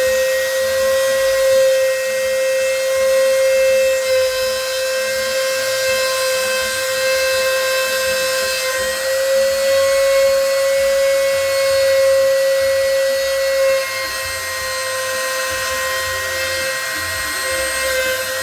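A machine spindle whines steadily as it carves wood.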